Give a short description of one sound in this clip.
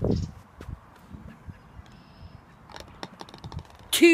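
A golf ball drops into a hole with a rattle.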